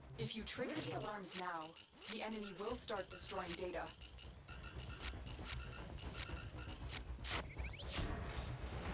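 A console beeps and clicks rapidly.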